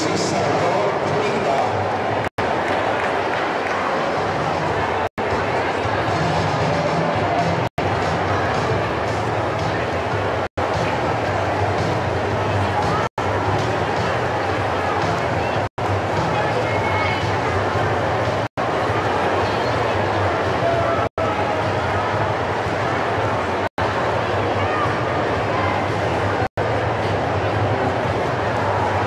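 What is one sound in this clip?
A large crowd cheers and shouts steadily in a big echoing hall.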